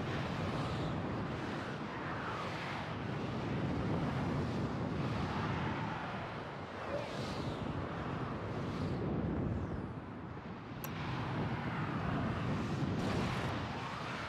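Spaceship engines rumble as they fly past.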